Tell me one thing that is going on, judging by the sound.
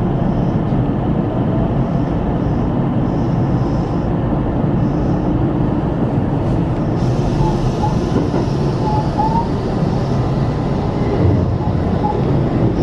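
A train rumbles steadily along the rails.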